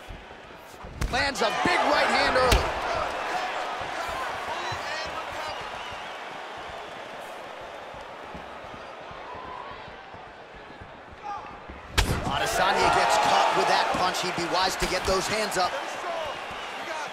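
A crowd roars and cheers.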